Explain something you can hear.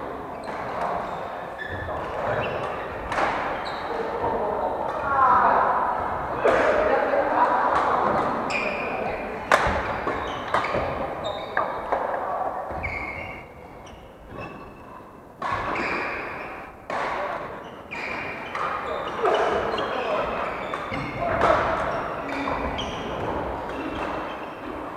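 Young men call out and talk across a large echoing hall.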